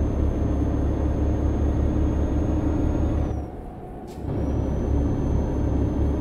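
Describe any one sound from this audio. A heavy diesel truck engine drones while cruising on a highway.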